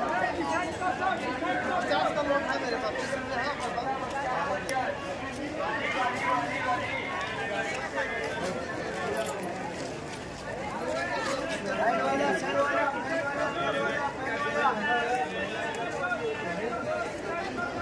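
A large crowd of men and women chatters all around outdoors.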